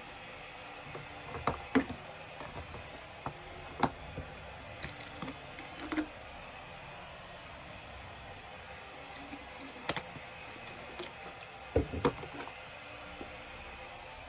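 Small plastic objects clack and tap on a table.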